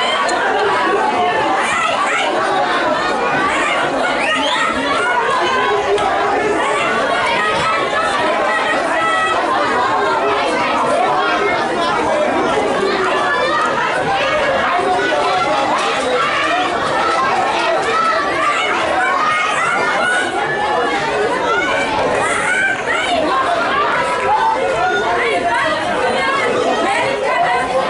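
A crowd of spectators chatters and calls out in the open air.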